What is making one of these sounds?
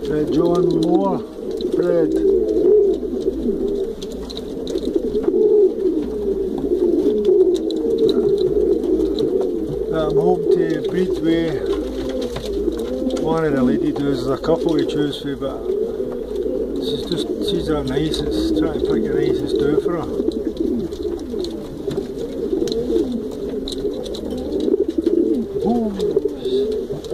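A pigeon coos in deep, rolling murmurs close by.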